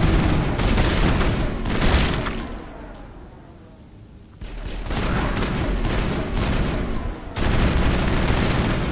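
Energy blasts crackle and roar loudly.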